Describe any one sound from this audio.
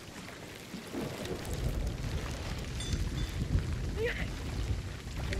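Stormy waves rumble and crash against a wooden boat.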